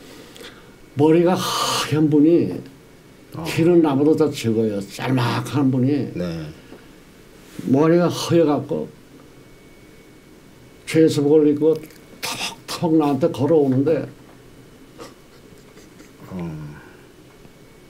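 An elderly man speaks with animation into a close microphone, in bursts with pauses.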